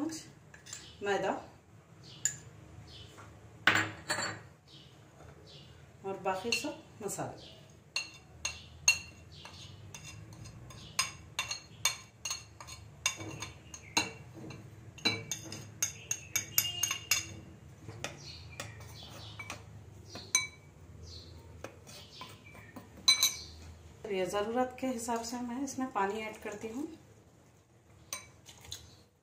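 A metal spoon clinks and taps against a glass bowl.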